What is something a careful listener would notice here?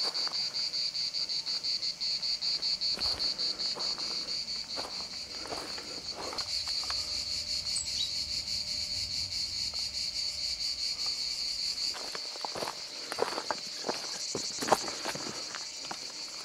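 Footsteps crunch on a rocky, gravelly trail.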